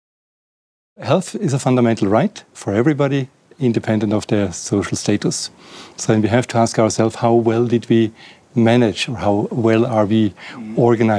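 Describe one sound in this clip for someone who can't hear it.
A middle-aged man speaks calmly and with animation into a close microphone.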